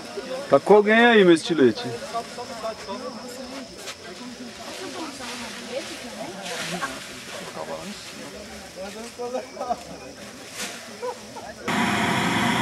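Men talk and call out nearby outdoors.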